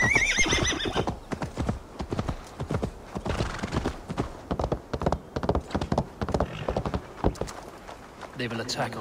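A horse gallops, its hooves thudding and clattering over wooden planks.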